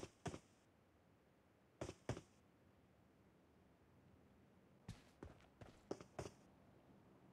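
Footsteps thud on the ground.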